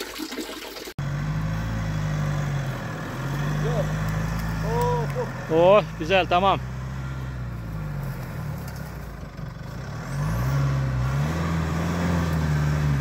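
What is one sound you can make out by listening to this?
A truck engine revs and strains.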